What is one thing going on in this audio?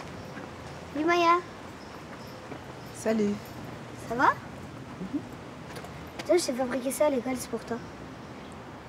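A young girl speaks softly and cheerfully, close by.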